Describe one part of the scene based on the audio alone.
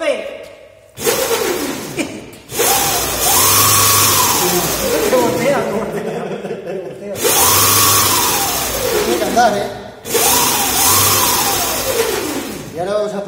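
An electric motor whines, rising and falling in pitch as it revs up and down.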